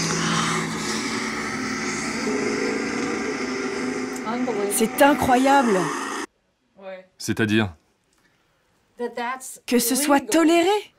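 A middle-aged woman speaks with animation close by.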